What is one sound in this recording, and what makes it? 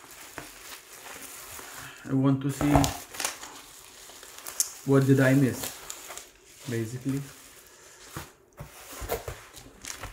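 Bubble wrap crinkles as it is handled.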